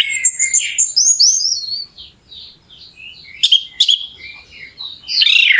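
A small songbird sings a fast, warbling song of high chirps and whistles close by.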